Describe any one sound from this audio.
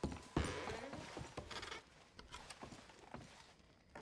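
A wooden cabinet door creaks open and shut.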